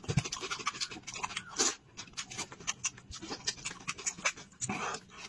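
Fingers pull apart wet, sticky meat.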